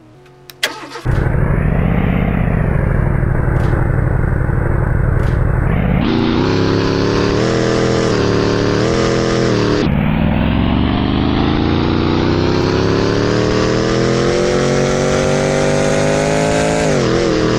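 A sports car engine revs hard and roars, climbing in pitch as the car speeds up.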